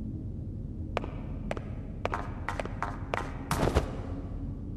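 A girl's quick footsteps patter across a hard floor.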